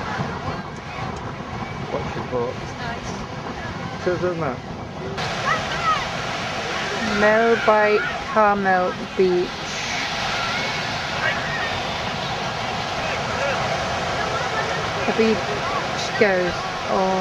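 Waves break on a beach steadily.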